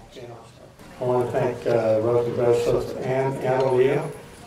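A man speaks calmly into a microphone through loudspeakers.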